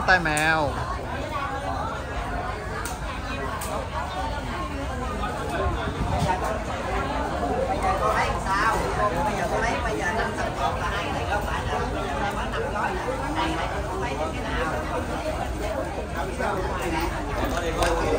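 Many people chatter nearby.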